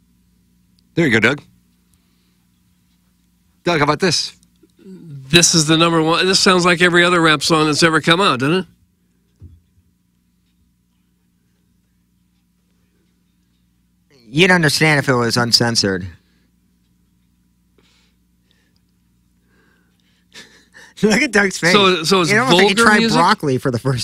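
Several men talk into close microphones in turns, with pauses between.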